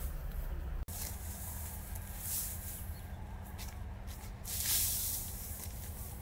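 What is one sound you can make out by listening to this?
Dry wheat stalks rustle as they are carried.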